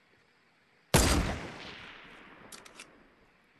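A rifle fires once with a loud crack that rings away.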